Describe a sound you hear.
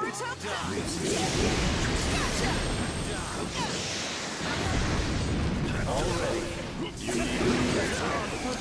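Fiery blasts roar and crackle in a game fight.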